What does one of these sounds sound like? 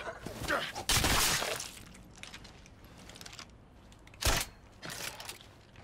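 A heavy blow lands with a thud.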